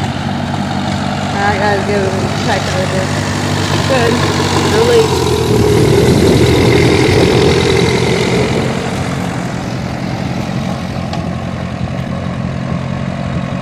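An old tractor engine idles and chugs steadily outdoors.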